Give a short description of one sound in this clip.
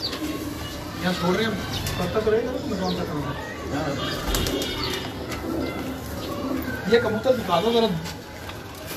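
Pigeons coo with deep, throaty calls close by.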